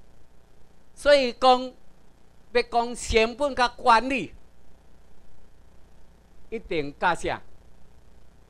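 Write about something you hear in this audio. A middle-aged man speaks into a microphone in bursts, heard through a loudspeaker in a room.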